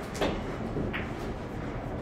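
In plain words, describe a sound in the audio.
Pool balls clack together on the table.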